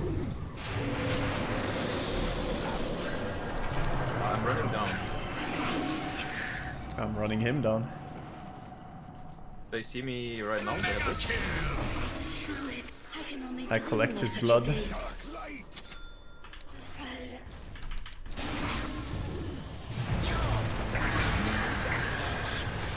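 Spell effects and combat sounds from a video game clash and boom.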